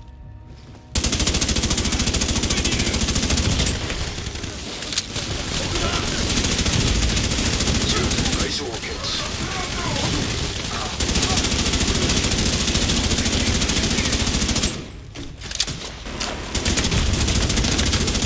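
Automatic gunfire rattles rapidly in long bursts.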